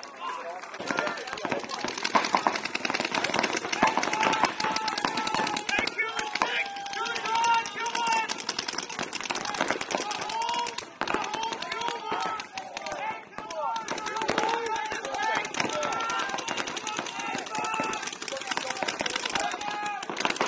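A paintball marker fires rapid popping shots.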